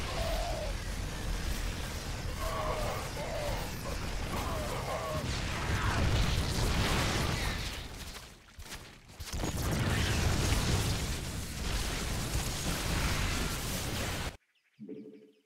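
Explosions boom over and over.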